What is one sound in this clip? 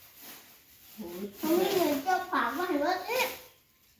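A woman speaks nearby with animation.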